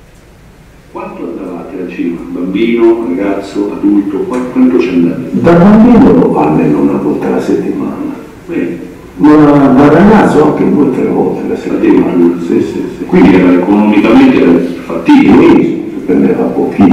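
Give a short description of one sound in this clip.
An elderly man speaks calmly through a loudspeaker in a room.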